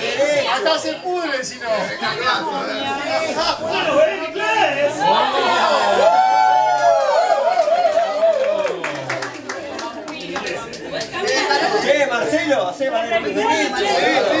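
Several people chatter and laugh in a room.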